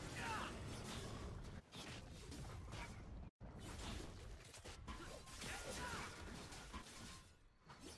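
Game combat sound effects whoosh and clash.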